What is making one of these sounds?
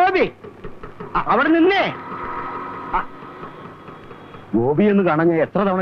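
A scooter engine putters as it approaches and stops.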